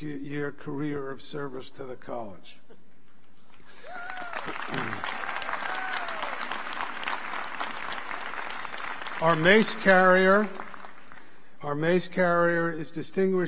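An elderly man speaks calmly through a microphone and loudspeakers.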